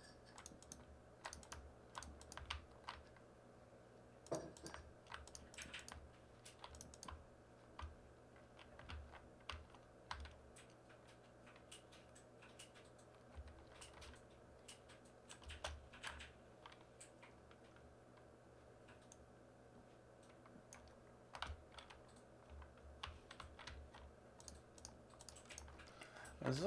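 A man talks calmly and close into a headset microphone.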